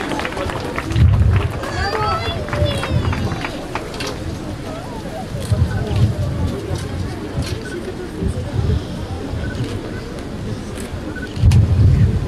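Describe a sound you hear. An elderly man chants into a microphone.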